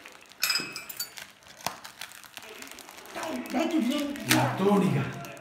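Foil wrapping crinkles and rustles as a child tears it open.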